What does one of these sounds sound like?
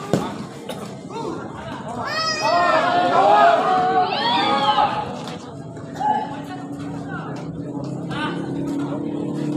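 Young men call out to each other while playing.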